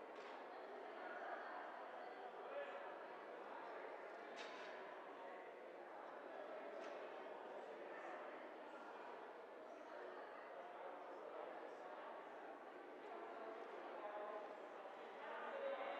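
A crowd of men and women chat in a large echoing hall.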